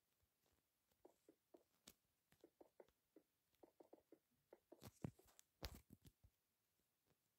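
Stone blocks thud softly as they are placed one after another.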